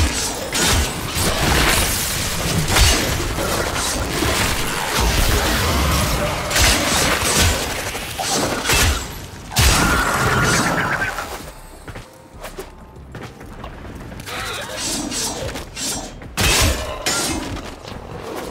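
Heavy blade strikes and crashing impacts ring out in quick bursts.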